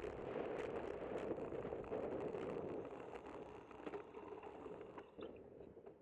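Wind rushes loudly past a moving rider, then dies down.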